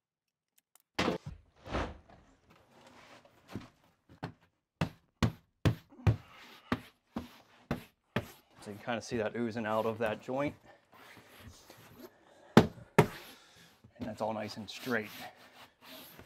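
Hands slap and pat against a wall board.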